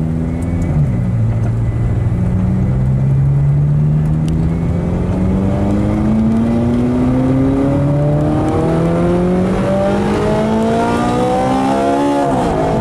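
A car engine roars and climbs in pitch as it accelerates, dropping briefly with each gear change.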